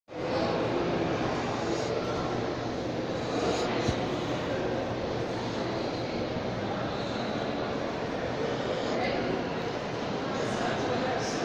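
A crowd murmurs with distant chatter in a large echoing hall.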